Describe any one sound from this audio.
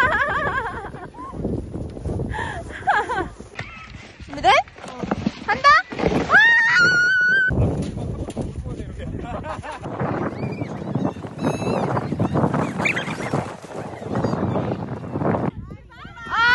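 Plastic sleds scrape and hiss over snow.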